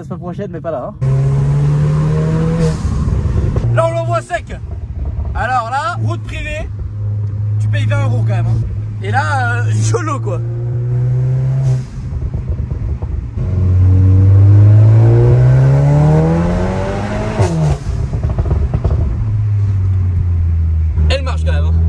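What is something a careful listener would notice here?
A car engine hums and revs while driving.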